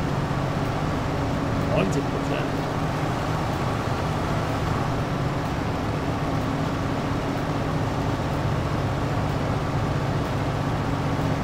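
A heavy harvester engine drones steadily.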